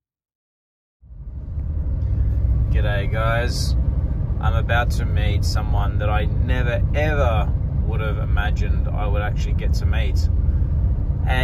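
A car engine hums and tyres rumble on the road, heard from inside the car.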